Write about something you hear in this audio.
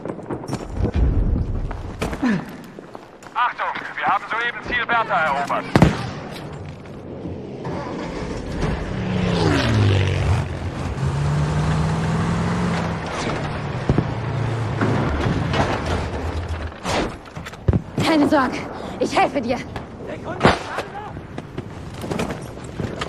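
Rifle shots crack sharply.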